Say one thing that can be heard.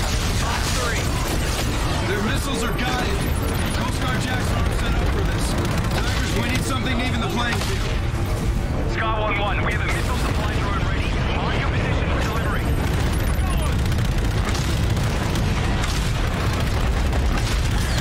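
Guns fire rapidly in loud bursts.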